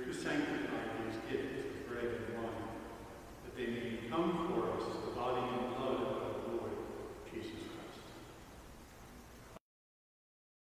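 A man chants slowly through a microphone in a large echoing hall.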